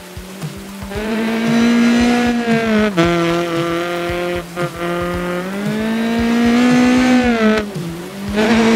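A rally car engine roars loudly, revving up and dropping with each gear change.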